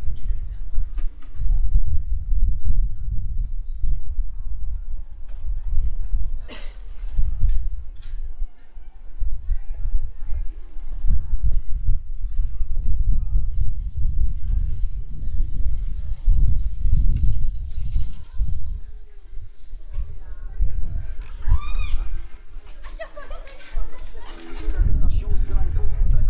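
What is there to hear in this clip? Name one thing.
Bicycles rattle over cobblestones.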